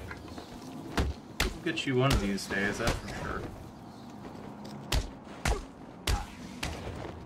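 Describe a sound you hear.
Heavy punches and kicks land with sharp thuds in quick bursts.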